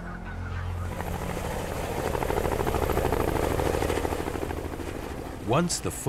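A helicopter's rotor blades chop rapidly as it takes off close by.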